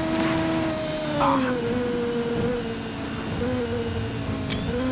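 A racing car engine drops in pitch as the car slows down.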